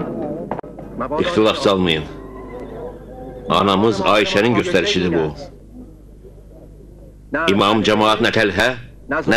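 A man speaks forcefully and with emotion, with pauses between phrases.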